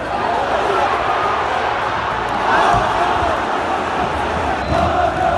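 A large stadium crowd chants and sings loudly all around.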